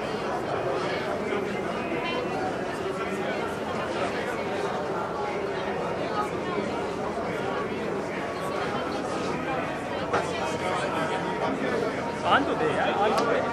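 A young woman speaks calmly with another young woman close by.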